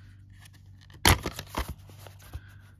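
A plastic case snaps open with a sharp click.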